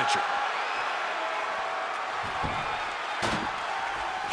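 A table crashes down onto a wrestling ring.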